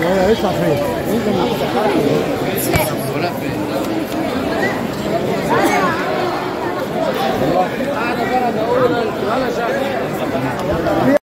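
A crowd of men chatters all around in a large echoing hall.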